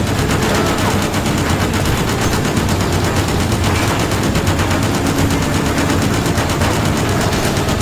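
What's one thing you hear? A mounted machine gun fires in rapid bursts.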